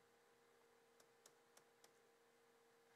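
Shoes tap and shuffle lightly on a wooden floor.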